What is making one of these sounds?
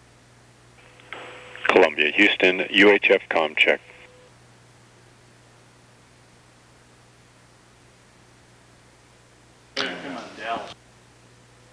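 Another man answers briefly over a radio link.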